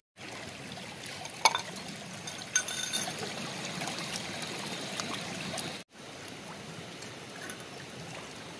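A shallow stream trickles and babbles over rocks.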